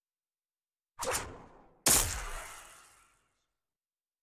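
A whooshing, shimmering effect sweeps in and fades away.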